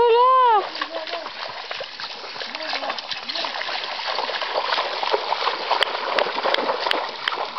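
Feet splash through shallow water as a man wades.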